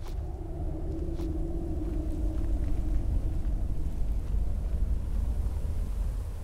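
Footsteps crunch slowly on loose gravel.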